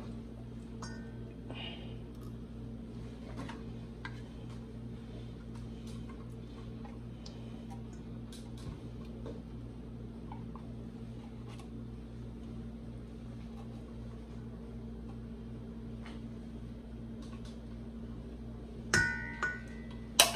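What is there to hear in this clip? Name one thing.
A spatula scrapes thick milk out of a tin can.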